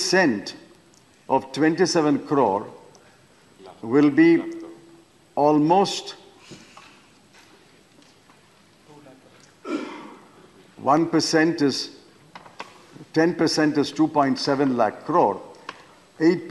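An elderly man speaks into a microphone in measured phrases with pauses.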